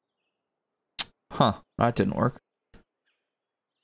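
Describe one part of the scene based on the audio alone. A man speaks briefly and casually into a microphone.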